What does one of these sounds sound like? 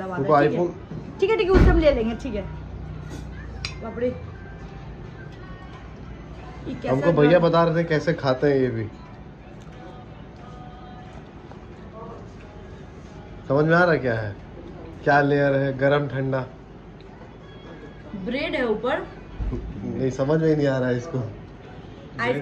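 A fork clinks on a plate.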